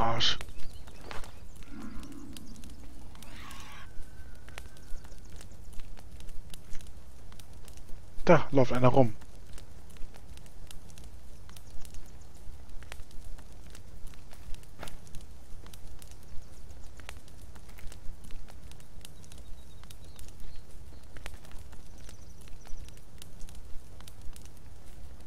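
A fire crackles and pops close by.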